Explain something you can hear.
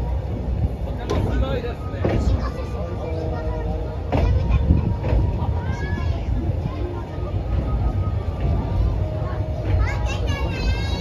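Wheels squeal against the rails.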